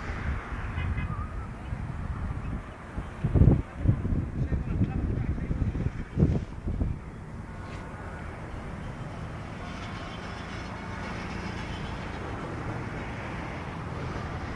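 Wind blows and rumbles outdoors.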